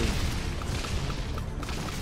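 A fiery explosion bursts with a loud boom.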